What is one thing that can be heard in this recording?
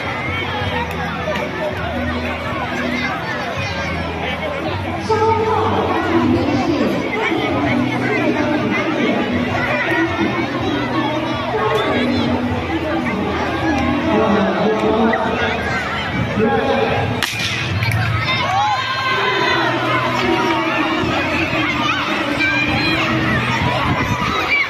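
A crowd of children and adults chatters and cheers outdoors.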